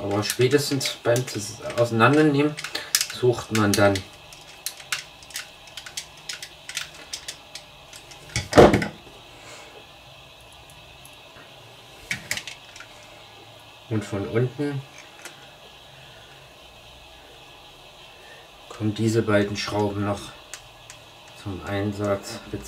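Small plastic parts click and tap as hands handle them.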